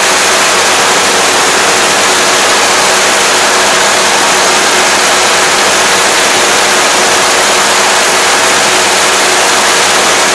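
A harvester engine roars steadily up close.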